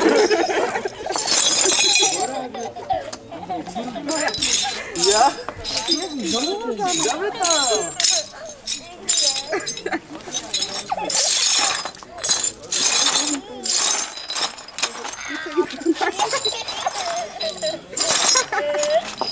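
A crowd of men and women chatter and laugh nearby outdoors.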